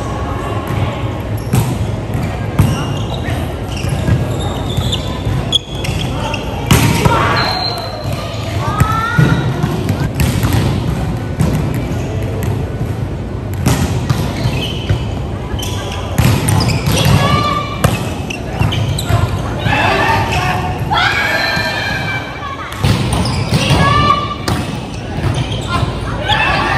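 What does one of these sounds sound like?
Sneakers squeak on the hard court floor.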